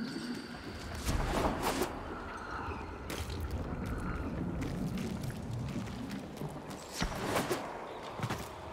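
Sword blows swish and clash in bursts.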